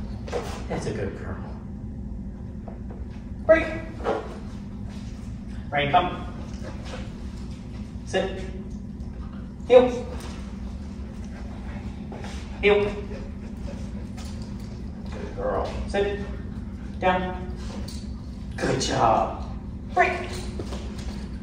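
A man speaks short commands to a dog, close by.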